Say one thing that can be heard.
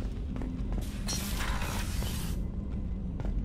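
A sliding door whooshes open.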